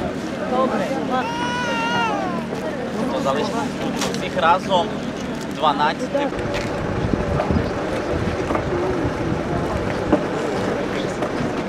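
A crowd of men, women and children chatter nearby outdoors.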